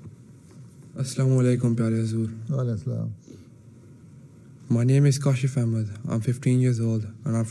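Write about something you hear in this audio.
A young man speaks steadily into a microphone.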